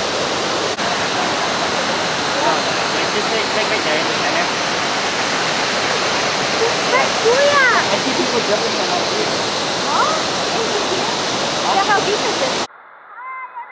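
A waterfall roars and water rushes loudly.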